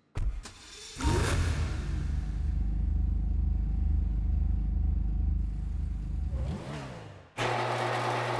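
A car engine idles with a deep rumble.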